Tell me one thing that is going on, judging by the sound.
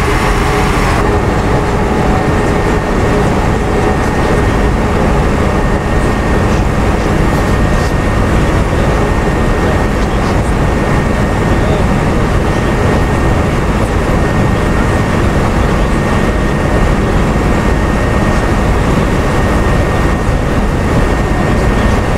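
A bus engine rumbles loudly from close by.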